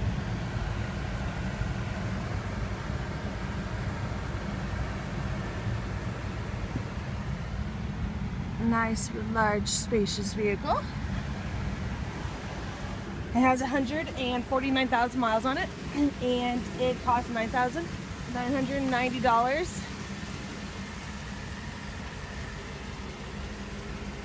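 A car engine idles with a low steady rumble.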